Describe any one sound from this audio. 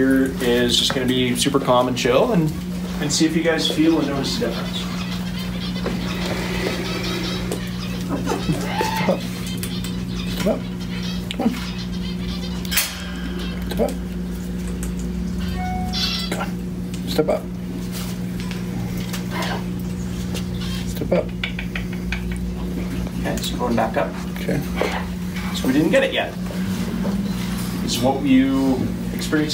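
A man talks calmly to a small audience nearby.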